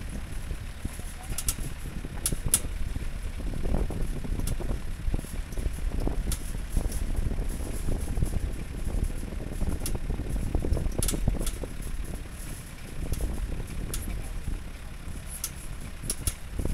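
A vehicle rumbles along a bumpy dirt road.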